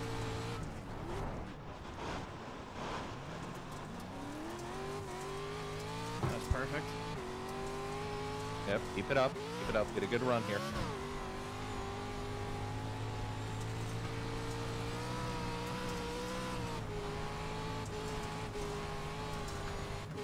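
A race car engine roars steadily, rising and falling in pitch as it shifts gears.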